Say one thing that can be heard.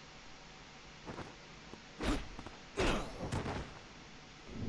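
A sword swings and strikes with sharp whooshes and clangs.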